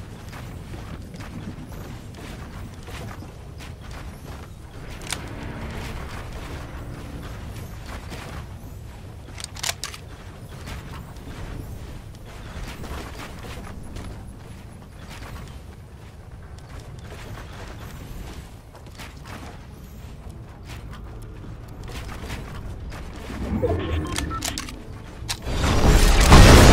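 Wooden walls and ramps are quickly built with rapid clicking thuds.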